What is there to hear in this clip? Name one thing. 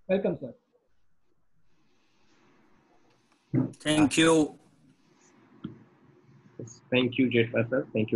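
A man speaks calmly and close into a computer microphone, pausing between phrases.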